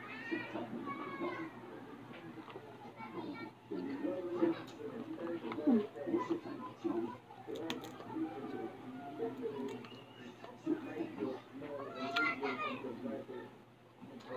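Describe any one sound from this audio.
A woman chews and smacks her lips while eating.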